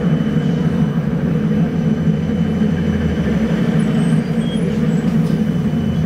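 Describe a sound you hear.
Cars drive past on the road.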